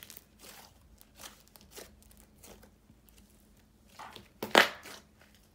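Soft slime squishes and crackles as hands knead and squeeze it.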